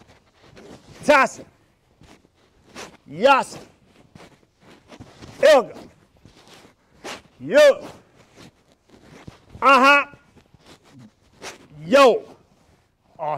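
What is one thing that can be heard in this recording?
A man shouts short, sharp cries again and again, about every two seconds.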